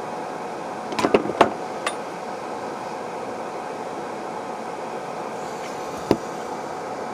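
A small plastic device clicks a few times, close by.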